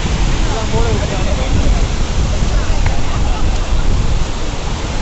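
Wind blows hard against the microphone.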